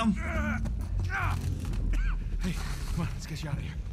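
A man urges someone to get up, speaking urgently.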